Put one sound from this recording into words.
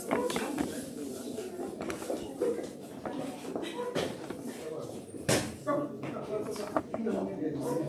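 A woman speaks into a microphone, heard through loudspeakers in an echoing room.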